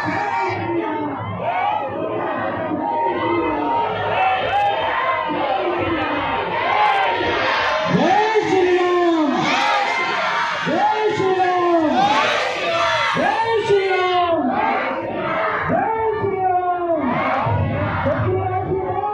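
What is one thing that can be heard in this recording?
A crowd of children chants and sings loudly outdoors.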